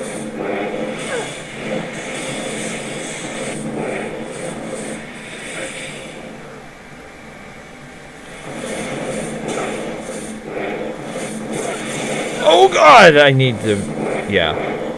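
Spells crackle and whoosh with fiery blasts.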